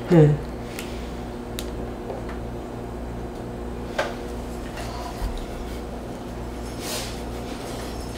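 A knife taps on a wooden board.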